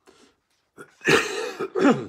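An elderly man coughs.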